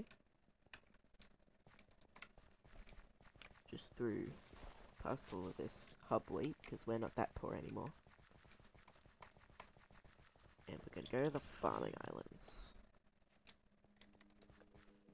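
Footsteps tread steadily on gravel and grass.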